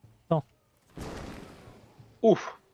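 An explosion bursts with a rushing whoosh.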